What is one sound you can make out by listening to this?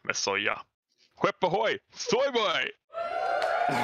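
A young man speaks cheerfully over an online call, in short bursts.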